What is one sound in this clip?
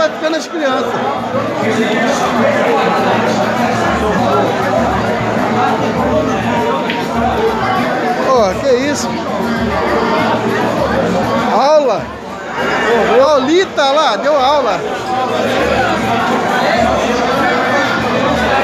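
A crowd of men talk and chatter loudly nearby.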